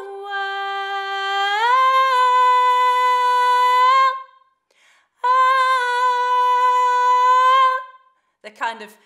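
A woman sings long held notes close by.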